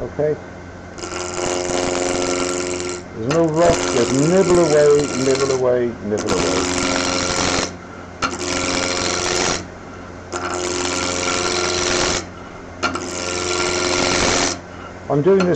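A chisel scrapes and shaves spinning wood in loud bursts.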